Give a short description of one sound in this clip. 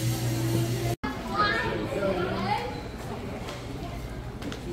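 Shoppers murmur and chatter in a large indoor hall.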